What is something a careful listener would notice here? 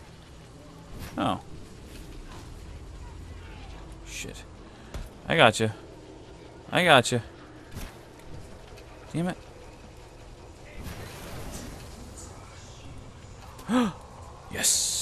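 A flaming blade swings with sharp whooshes.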